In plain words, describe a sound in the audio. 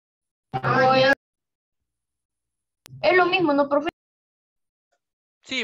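A woman speaks with animation over an online call, in short bursts.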